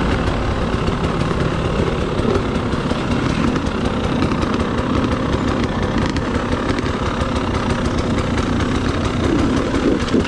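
A dirt bike engine revs and sputters close by.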